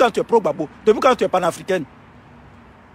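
A man sings out loudly in short bursts, heard over an online call.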